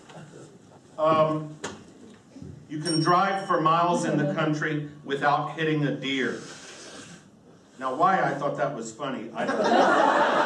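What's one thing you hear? An elderly man speaks expressively into a microphone.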